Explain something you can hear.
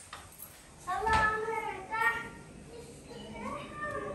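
A refrigerator door opens with a soft thud.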